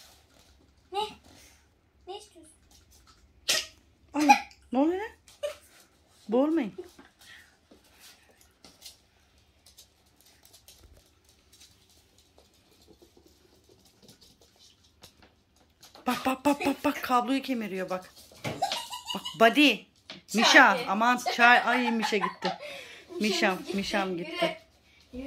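Small puppies yelp and whine in short high bursts.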